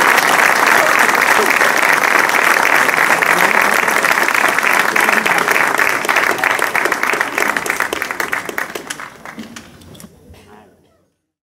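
A large outdoor crowd applauds loudly, then the clapping slowly fades away.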